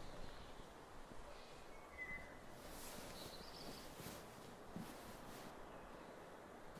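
Stiff fabric rustles softly as it is handled.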